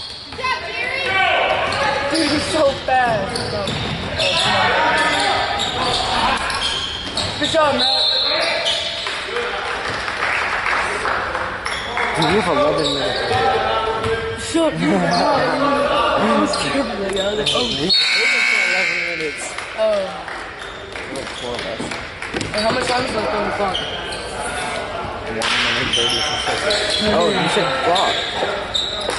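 Spectators talk and call out nearby in a large echoing gym.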